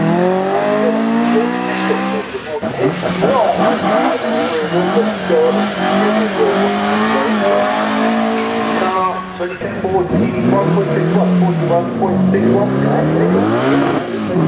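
A racing car engine roars and revs as the car speeds past.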